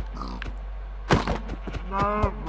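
A blade strikes an animal with a dull thud.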